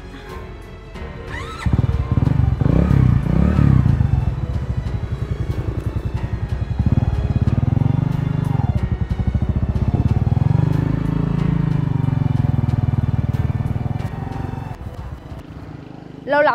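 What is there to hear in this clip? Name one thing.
A motorcycle engine rumbles and revs, then pulls away.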